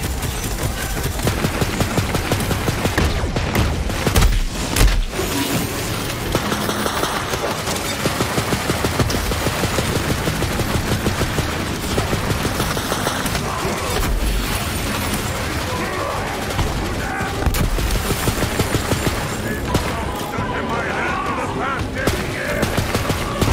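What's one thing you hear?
Rapid gunfire rattles without pause.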